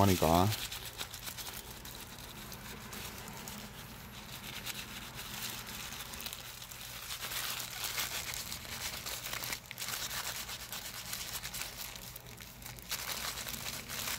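A cloth rubs and scrapes against a metal tool.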